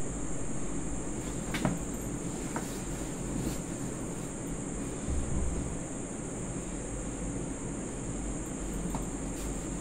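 Clothes and a bag rustle as they are packed.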